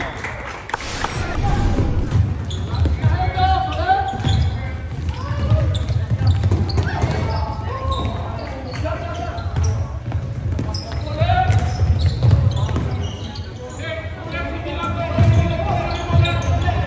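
Young boys shout to each other across an echoing hall.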